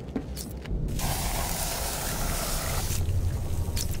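Gel hisses as it is sprayed onto a container.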